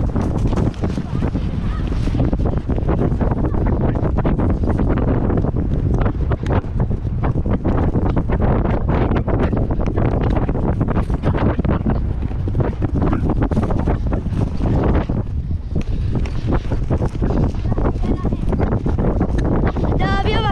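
Wind rushes loudly and steadily over a microphone outdoors.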